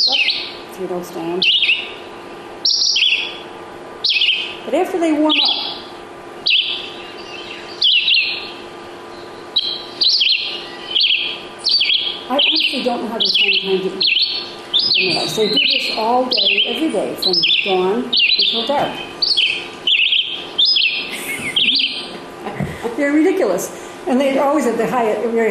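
A recorded bird sings short, repeated chirping phrases through a loudspeaker in a room.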